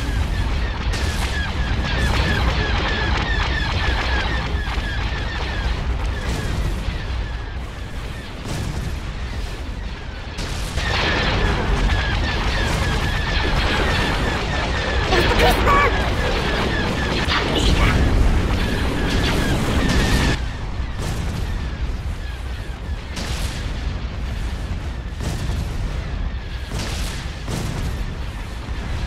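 Large engines rumble low and steady.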